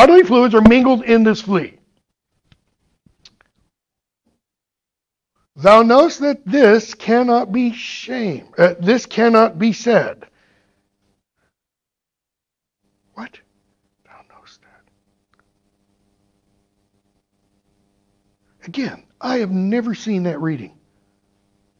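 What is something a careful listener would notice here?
A woman speaks calmly into a nearby microphone, pausing between phrases.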